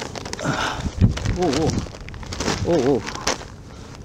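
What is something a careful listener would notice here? Paper sacks rustle and crinkle as they are handled.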